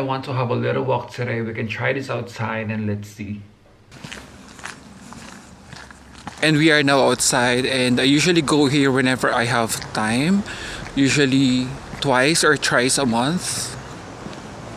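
A young man talks calmly and close up.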